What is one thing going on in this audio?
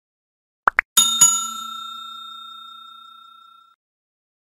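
A small bell rings brightly and slowly fades.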